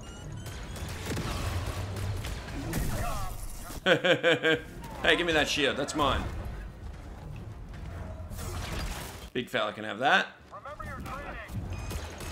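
Blaster shots zap in quick bursts.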